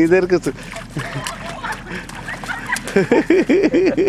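Shallow water splashes under running feet.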